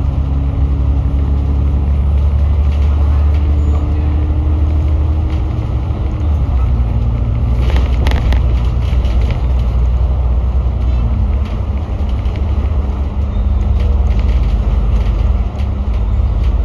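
A bus engine hums and whines steadily as the bus drives along.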